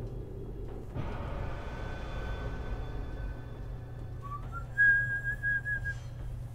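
A soft whooshing game effect swells and fades.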